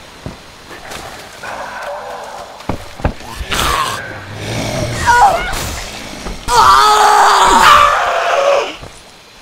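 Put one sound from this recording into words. A creature snarls and screams.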